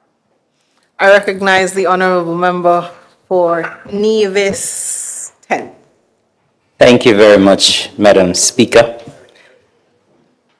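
A woman speaks formally into a microphone, with pauses.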